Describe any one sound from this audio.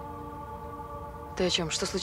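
A woman answers a man tensely.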